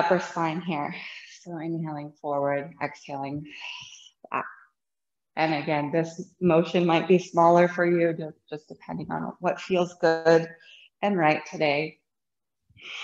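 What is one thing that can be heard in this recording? A woman speaks calmly and softly, close to a microphone.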